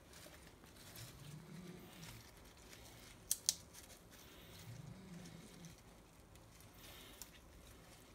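Lettuce leaves rustle and crinkle as hands handle them.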